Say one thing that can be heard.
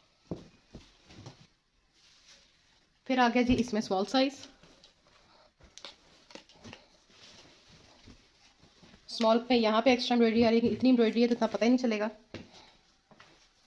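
Cloth rustles softly as a hand moves it.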